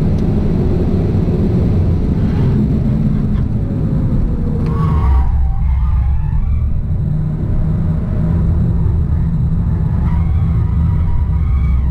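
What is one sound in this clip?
A car engine roars steadily at speed, heard from inside the car.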